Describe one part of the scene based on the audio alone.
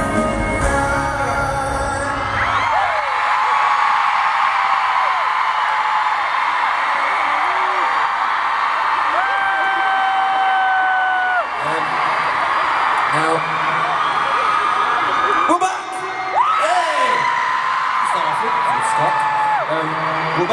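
A large crowd screams loudly in a big echoing arena.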